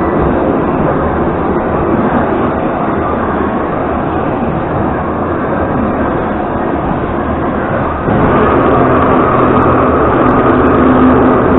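A subway train rumbles and roars loudly along the tracks, growing louder partway through.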